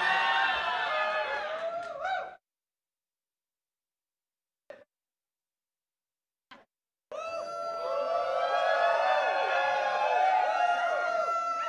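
A large crowd cheers and whoops in a big hall.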